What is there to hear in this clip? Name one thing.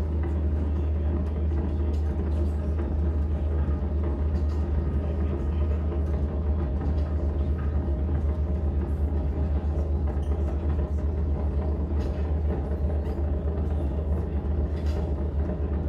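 A keyboard plays loud, droning electronic music.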